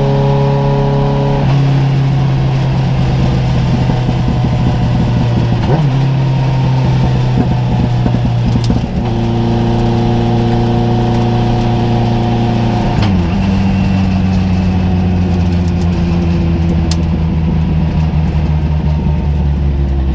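A four-cylinder race car engine roars at full throttle, heard from inside the cockpit.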